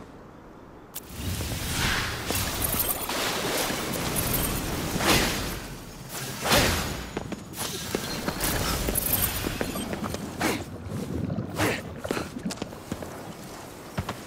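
Bursts of magical energy crackle and whoosh loudly.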